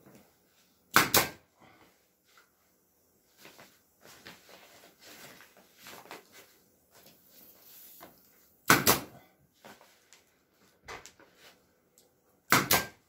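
A handheld power tool buzzes in short, sharp bursts.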